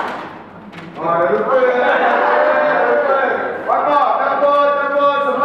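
A crowd of young men and women cheers and calls out together.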